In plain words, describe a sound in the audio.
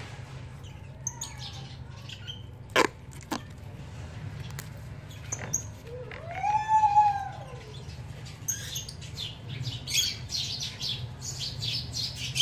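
Plastic film crinkles and rustles as it is wrapped tightly by hand.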